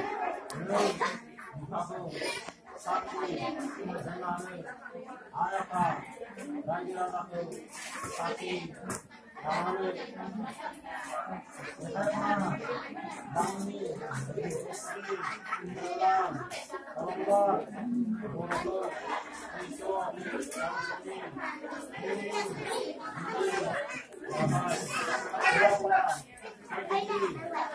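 A crowd of children and adults chatter and call out all around.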